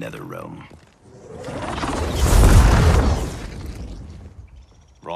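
Fire bursts up with a loud roaring whoosh and fades.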